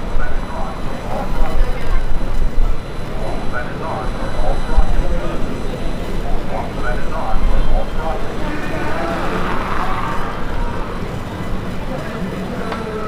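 A crowd of people chatters as they walk past.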